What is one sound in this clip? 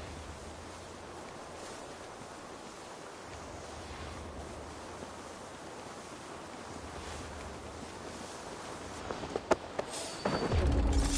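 Wind blows steadily through tall grass outdoors.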